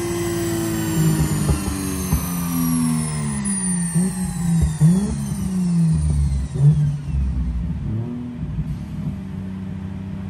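An exhaust pops and crackles sharply between revs.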